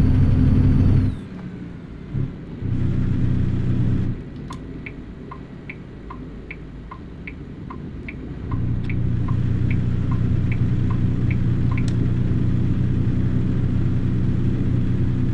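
A truck engine rumbles low inside the cab, dropping and swelling in loudness.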